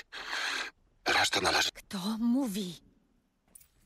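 A young woman speaks quietly and tensely, up close.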